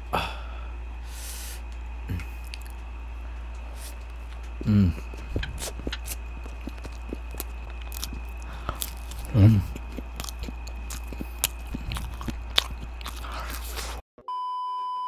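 A man eats crunchy food close to a microphone, with crisp bites and chewing.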